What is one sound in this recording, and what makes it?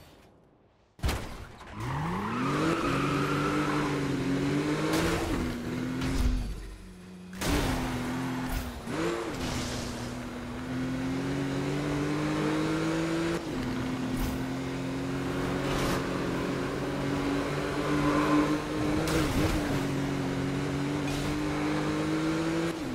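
A sports car engine roars and revs up as the car speeds away.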